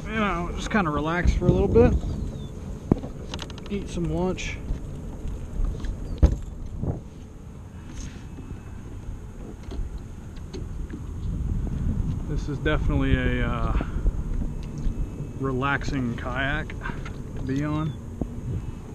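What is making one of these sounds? A man talks casually, close to the microphone.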